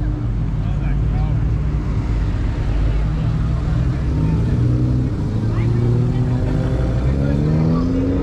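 A sports sedan rolls slowly past.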